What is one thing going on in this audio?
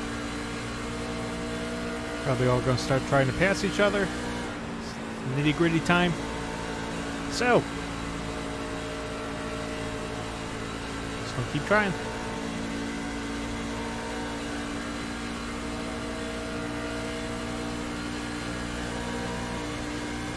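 A V8 racing truck engine drones at full throttle.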